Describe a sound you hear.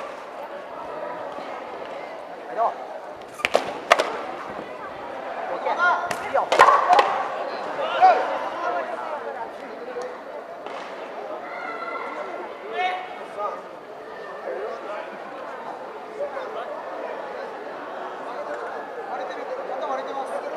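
A crowd of spectators murmurs and chatters.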